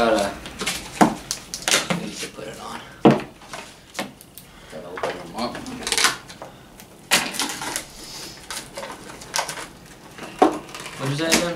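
A metal can clinks and rattles on a table.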